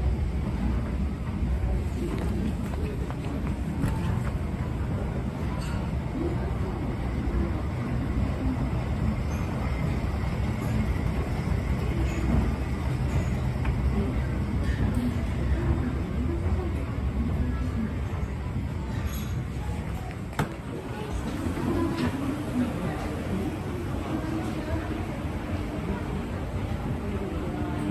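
An escalator hums and rumbles as its steps run.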